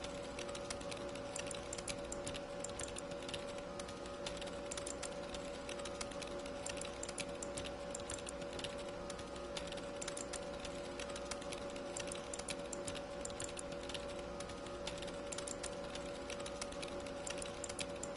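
Keyboards clatter with quick, steady typing.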